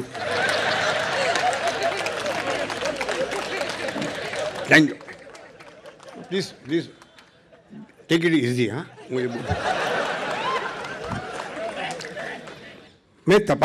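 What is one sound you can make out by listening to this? A crowd laughs and applauds loudly.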